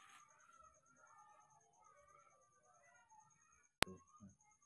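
A baby macaque whimpers.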